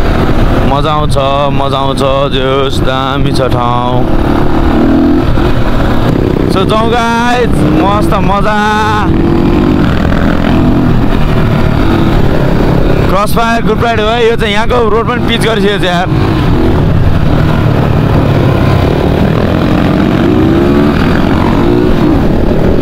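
Dirt bike engines rev and whine close by, rising and falling in pitch.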